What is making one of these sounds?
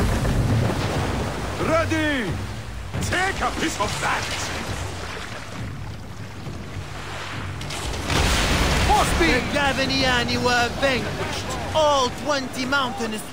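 Waves surge and splash around a ship.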